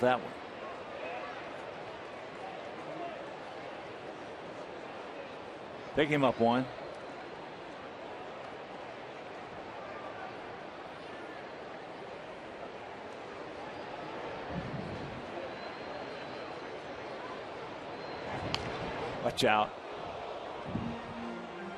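A large crowd murmurs steadily outdoors.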